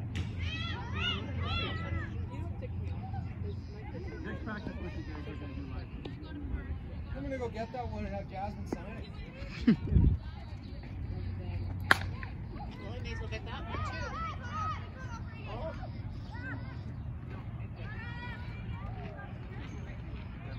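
Young players call out to each other across an open field.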